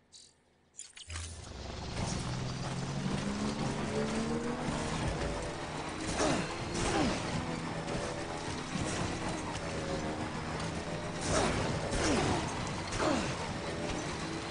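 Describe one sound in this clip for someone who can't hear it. A motorbike engine rumbles and revs over rough ground.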